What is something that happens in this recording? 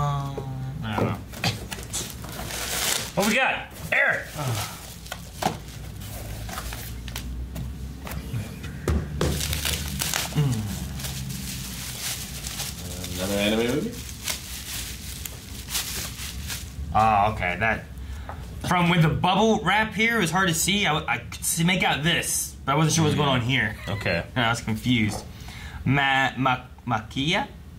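Men talk with animation close to microphones.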